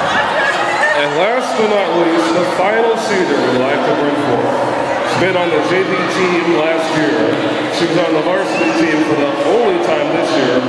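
Women talk loudly close by.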